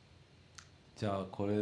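An acoustic guitar strums chords.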